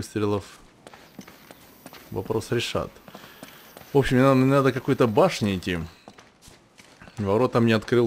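Footsteps run over a hard, wet floor.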